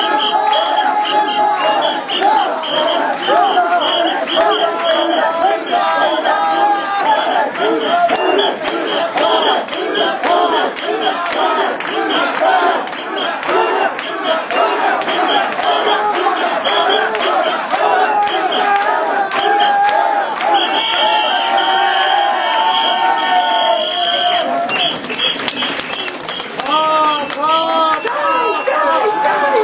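A crowd of men chants loudly and rhythmically outdoors.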